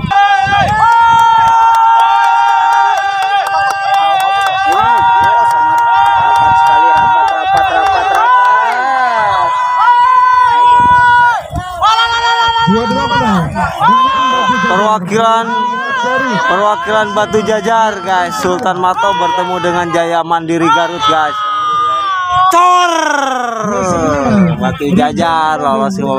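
A crowd of men shouts and calls out loudly outdoors.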